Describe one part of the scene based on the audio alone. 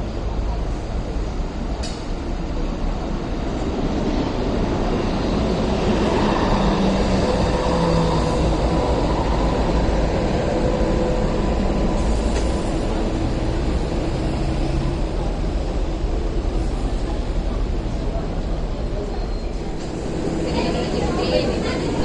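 A light rail tram rumbles closer along the tracks and passes by.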